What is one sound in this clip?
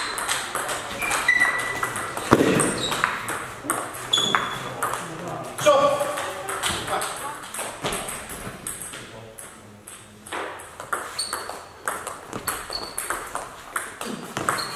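A table tennis ball clicks rapidly back and forth off paddles and the table.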